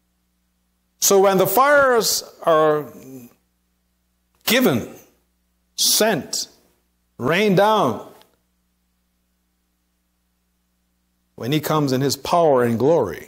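An elderly man preaches with animation through a microphone in an echoing room, in bursts with pauses.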